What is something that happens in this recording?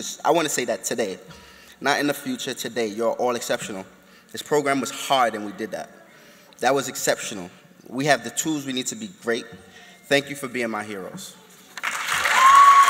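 A man speaks into a microphone with feeling, in a large echoing hall.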